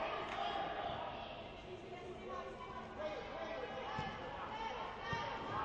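Young girls shout and call out across the court.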